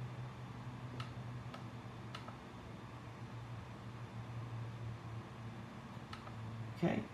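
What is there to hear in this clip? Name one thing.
Buttons on a handheld remote control click softly.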